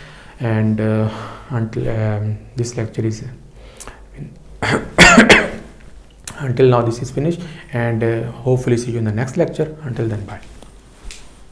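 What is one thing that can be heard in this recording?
A middle-aged man speaks calmly and clearly into a nearby microphone.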